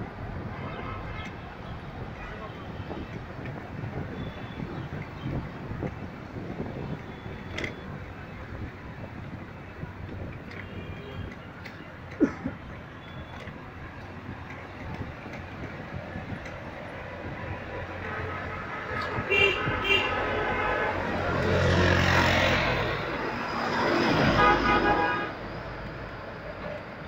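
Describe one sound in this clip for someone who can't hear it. Road traffic rumbles steadily nearby.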